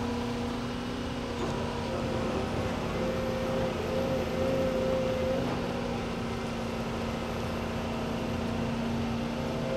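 An excavator bucket scrapes into soil.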